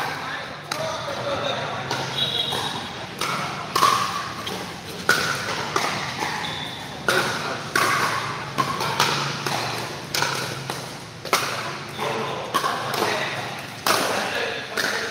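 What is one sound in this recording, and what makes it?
Paddles knock a plastic ball back and forth with sharp hollow pops.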